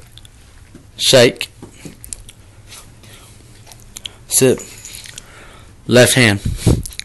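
A large dog barks and yowls loudly, close by.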